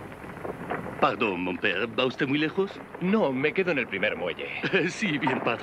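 Two men talk with animation close by.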